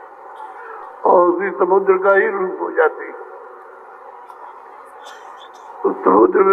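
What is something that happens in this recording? An elderly man speaks into a microphone, heard through a loudspeaker with echo.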